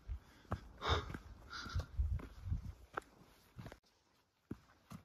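Footsteps crunch on a gravel trail.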